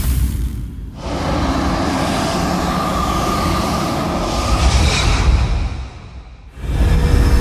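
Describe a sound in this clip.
A deep magical whoosh swells and roars.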